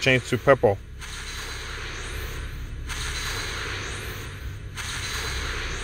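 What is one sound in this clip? A bright magical shimmer swells with each reveal.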